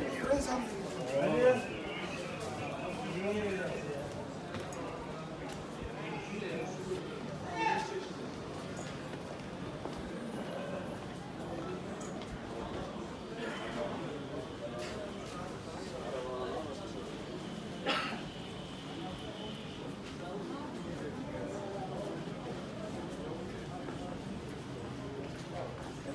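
Voices of passers-by murmur nearby.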